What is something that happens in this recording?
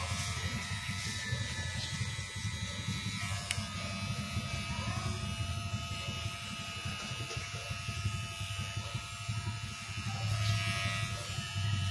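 Electric hair clippers buzz steadily close by.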